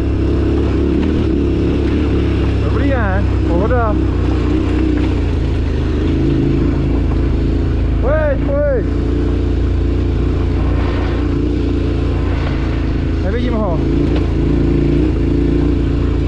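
A motorbike engine hums steadily, rising and falling in pitch as the rider shifts.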